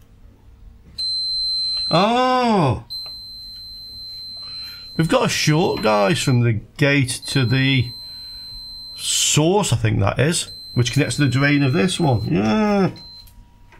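A multimeter beeps with a steady high tone.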